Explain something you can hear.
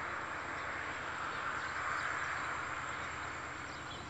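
A distant train approaches along the tracks with a low rumble.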